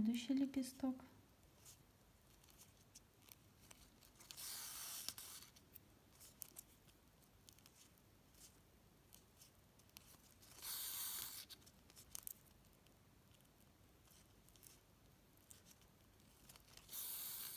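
Small clicks and rustles come from handling the ribbon.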